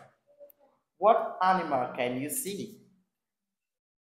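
A man speaks calmly and clearly close by.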